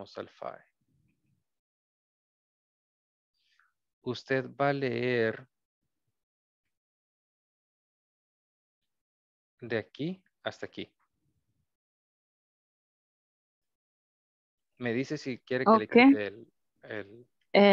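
A man reads aloud over an online call, in short bursts with pauses.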